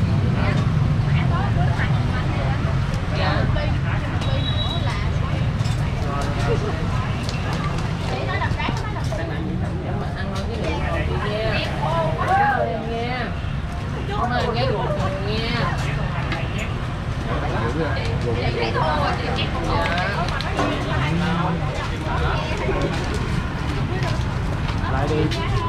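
Young women chat nearby.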